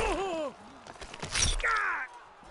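A heavy blow thuds.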